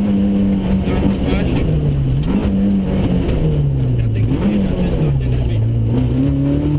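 A car engine roars and revs up and down through the gears.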